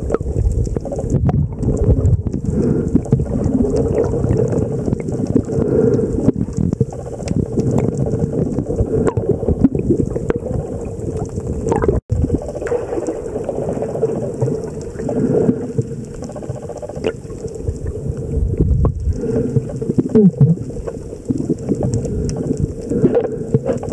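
Dolphins click underwater.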